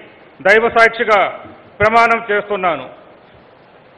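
A middle-aged man speaks loudly through a microphone.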